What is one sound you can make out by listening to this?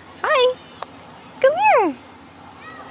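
A toddler laughs close by.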